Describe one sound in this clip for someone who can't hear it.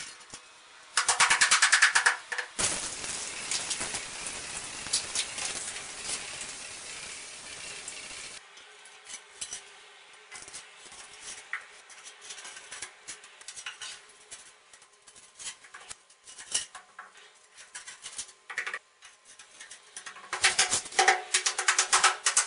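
A rubber float taps rapidly against tiles.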